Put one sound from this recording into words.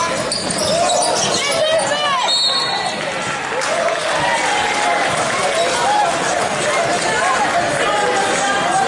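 Sneakers squeak sharply on a wooden floor in a large echoing gym.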